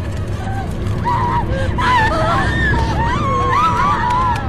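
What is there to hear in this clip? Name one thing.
Several women cry out and wail in distress nearby.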